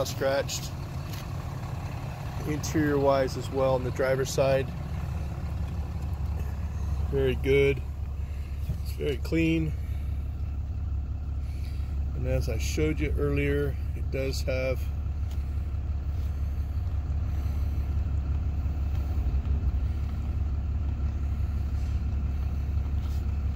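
An engine idles with a steady low hum.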